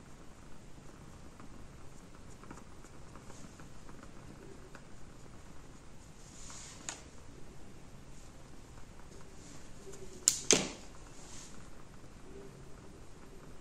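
A makeup brush brushes softly against skin.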